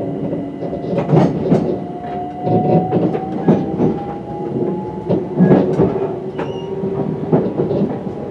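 A train's wheels squeal on a curve.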